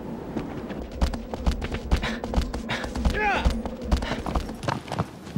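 Horse hooves pound the ground at a gallop.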